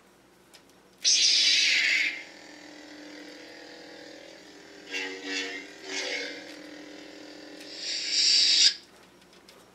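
A toy lightsaber hums and whooshes as it swings.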